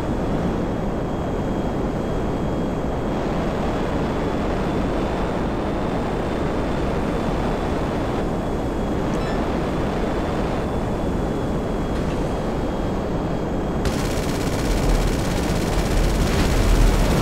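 A jet engine roars steadily.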